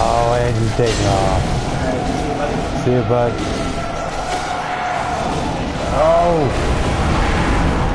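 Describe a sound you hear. Blades clash and strike in a video game fight.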